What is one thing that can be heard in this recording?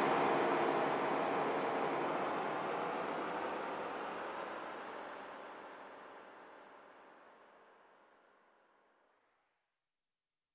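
Electronic dance music plays from speakers and slowly fades out.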